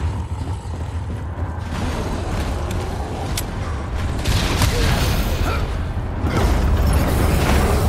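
A giant creature roars loudly.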